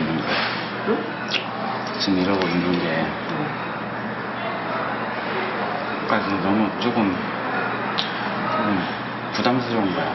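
A teenage boy speaks quietly and hesitantly nearby.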